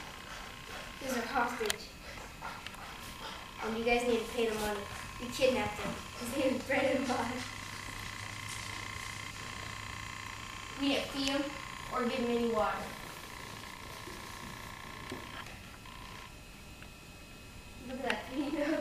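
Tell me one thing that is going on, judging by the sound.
A young boy talks nearby.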